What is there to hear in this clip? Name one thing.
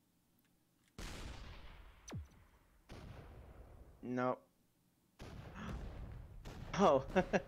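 A cartoonish shot fires and explodes with a burst.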